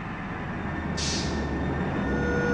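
Air brakes hiss sharply.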